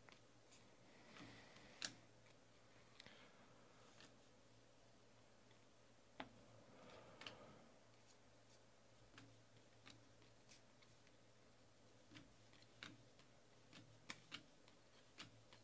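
Stiff cards tap and click against each other.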